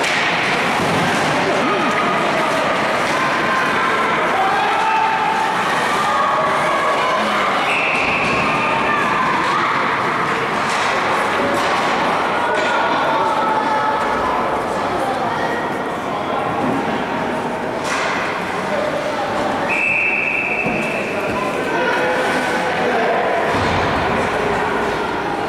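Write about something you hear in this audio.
A crowd of spectators chatters in a large echoing rink.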